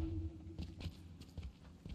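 Electricity crackles and sparks close by.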